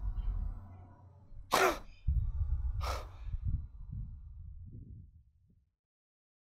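A young man gasps and breathes heavily close by.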